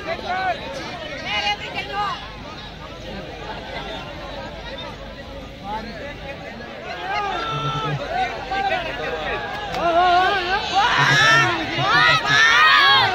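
A large crowd murmurs in the distance outdoors.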